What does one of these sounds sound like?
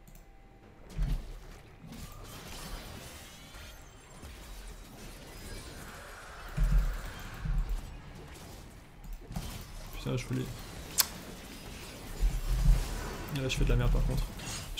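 Spell blasts and hits clash in a fast fight.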